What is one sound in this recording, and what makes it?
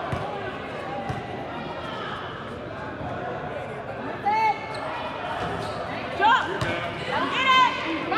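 A basketball thuds on a hard floor.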